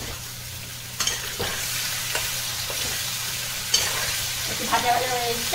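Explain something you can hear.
Food sizzles in a pan.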